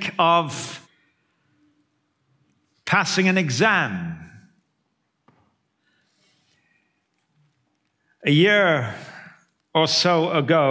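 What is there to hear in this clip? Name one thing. An older man speaks expressively through a microphone, with pauses between phrases.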